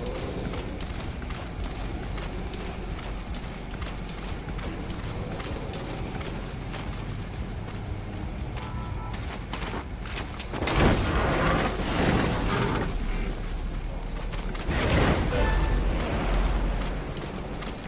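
A heavy truck engine rumbles and roars as it drives past close by.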